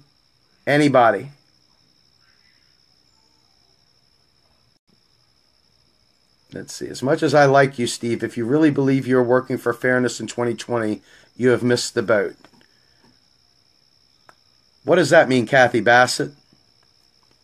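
A middle-aged man speaks calmly and close to the microphone, in bursts with pauses.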